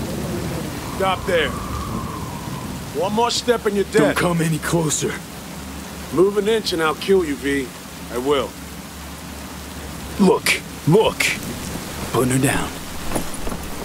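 A man shouts threats angrily from a short distance.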